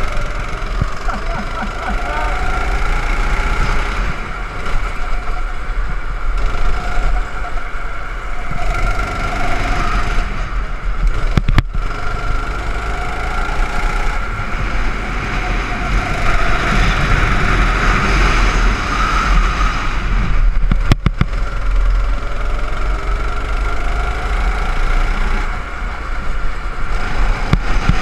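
A small kart engine buzzes loudly close by, rising and falling in pitch as it speeds up and slows down.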